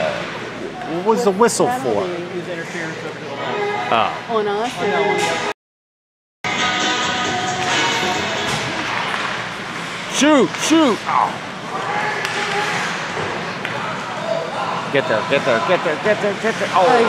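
Skates scrape across ice.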